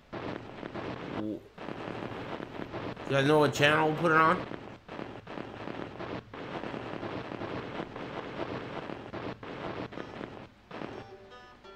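A radio hisses with crackling static.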